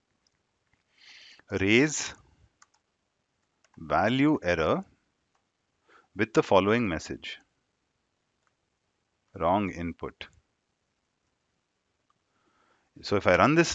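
A young man speaks calmly and closely into a headset microphone, in short phrases with pauses.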